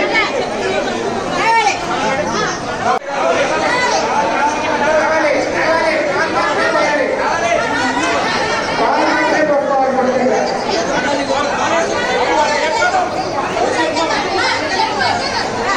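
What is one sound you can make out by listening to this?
A crowd of men and women talk and call out close by.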